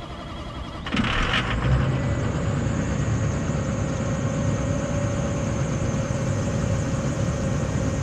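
A diesel engine in a military armored truck idles.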